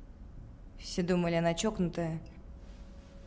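A second young woman speaks in a shaky, upset voice.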